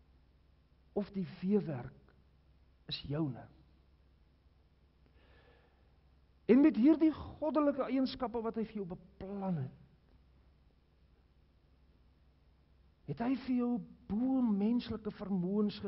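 An elderly man preaches with animation through a microphone, pausing between phrases, in a large echoing hall.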